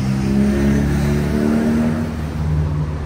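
A woman talks nearby on a busy street.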